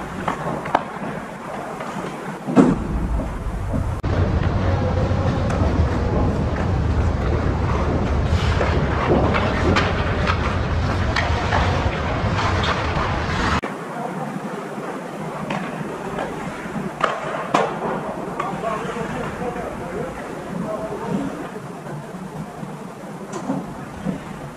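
Ice hockey skates scrape and carve on ice in a large echoing arena.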